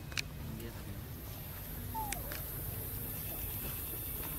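Dry leaves rustle and crackle as monkeys shift about on the ground.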